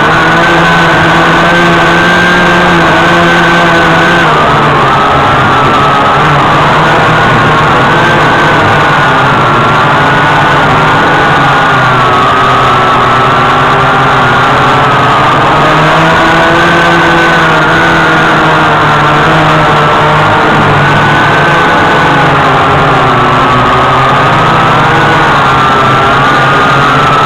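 Drone propellers buzz steadily up close, rising and falling slightly in pitch.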